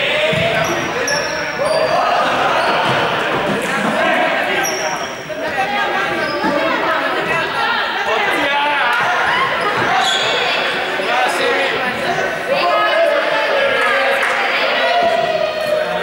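Children shout and chatter throughout a large echoing hall.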